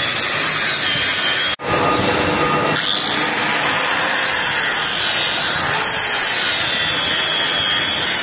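Metal hisses and scrapes against a spinning grinding disc.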